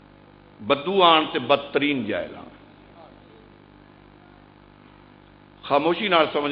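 A man speaks forcefully into a microphone, heard through loudspeakers.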